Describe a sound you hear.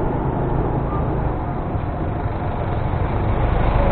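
A truck engine rumbles past close by.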